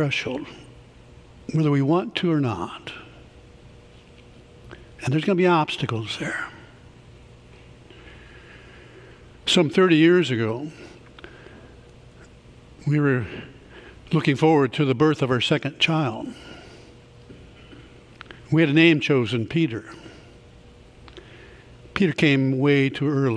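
A man speaks calmly into a microphone in a large, echoing hall, pausing often.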